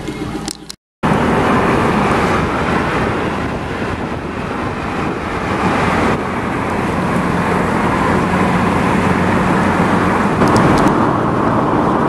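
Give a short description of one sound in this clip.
A car drives along a road with a steady rumble of tyres and engine.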